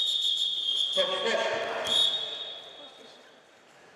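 Spectators cheer and shout loudly in an echoing hall.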